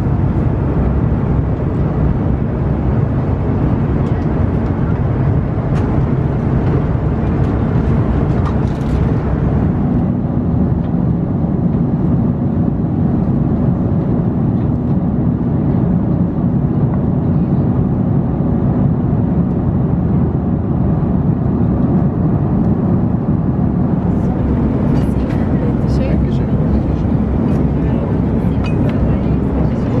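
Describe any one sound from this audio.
Jet engines roar steadily in a cabin.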